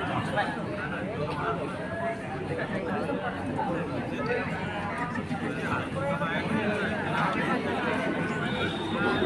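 A crowd of young men chatter and call out outdoors.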